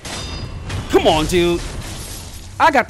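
A sword slashes into a body.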